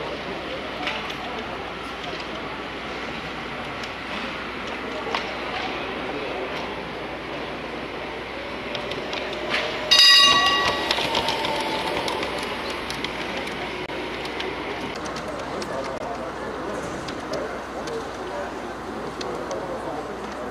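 A model tram hums and rattles along its track.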